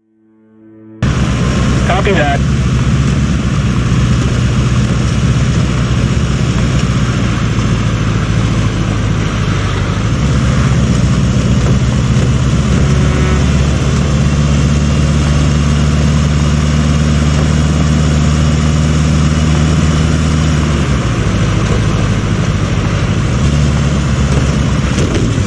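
Tyres hiss over a wet, snowy road.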